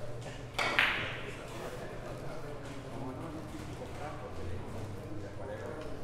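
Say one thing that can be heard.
Billiard balls click against each other as they roll across the table.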